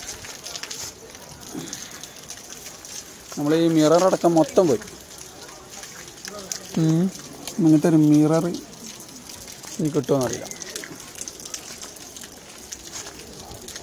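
Hailstones patter and tick on parked cars outdoors.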